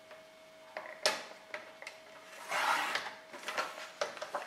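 A paper trimmer blade slides and cuts through paper.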